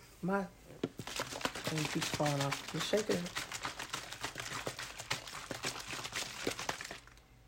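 Liquid sloshes in a plastic bottle.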